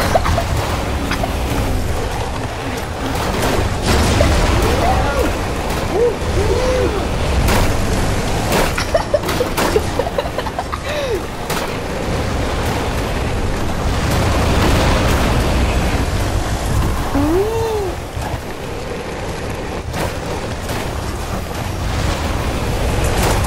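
A vehicle engine roars steadily as it drives.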